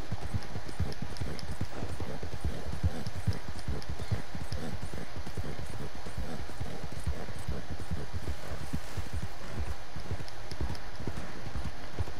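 Horse hooves thud rapidly on grass and dirt at a gallop.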